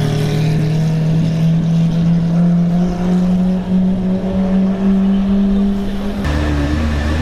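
A sports car engine idles loudly and rumbles nearby.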